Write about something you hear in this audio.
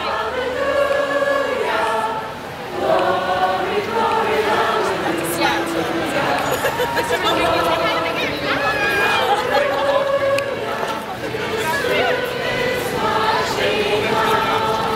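A large crowd sings together loudly outdoors.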